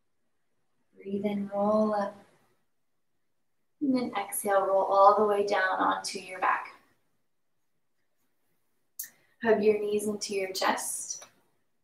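A young woman speaks calmly and clearly into a close microphone, pausing between phrases.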